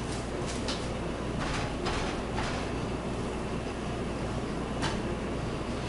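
Raw meat is handled and turned on a plate.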